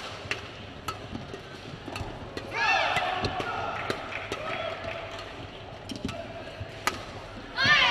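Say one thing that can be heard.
Rackets strike a shuttlecock back and forth in quick, sharp smacks.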